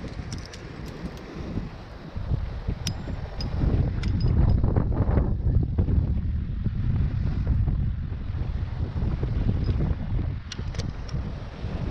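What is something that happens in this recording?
Metal climbing gear clinks.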